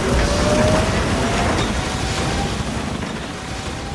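Missiles roar and streak past.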